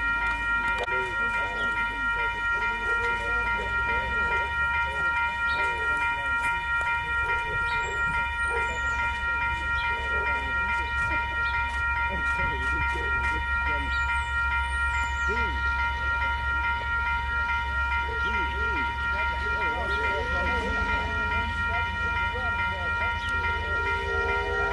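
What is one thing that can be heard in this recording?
A steam locomotive chugs and rumbles as it approaches.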